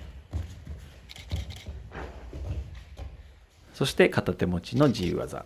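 Bare feet thud and shuffle on a padded mat.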